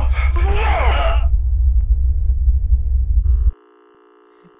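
Loud static hisses and roars.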